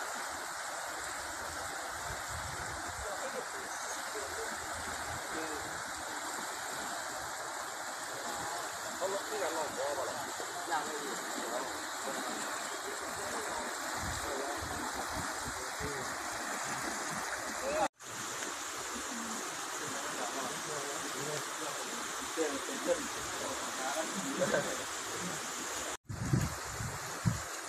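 Fast floodwater rushes and roars steadily.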